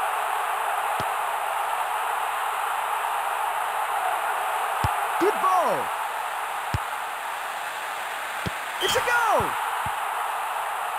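A football is kicked with dull thuds several times.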